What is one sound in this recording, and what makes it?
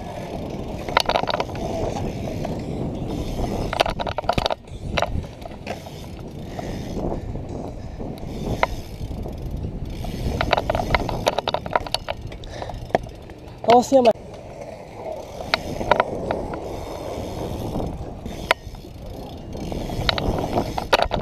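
Bike parts rattle and clank over bumps.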